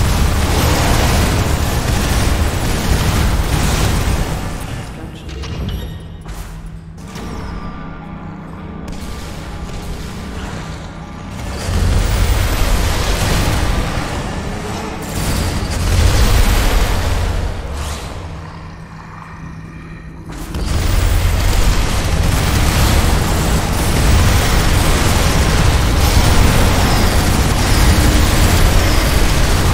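Laser beams hum and crackle as they fire.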